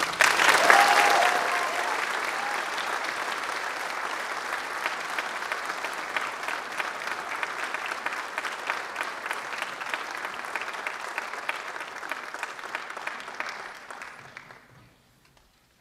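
An audience applauds loudly in a large hall, then the clapping fades away.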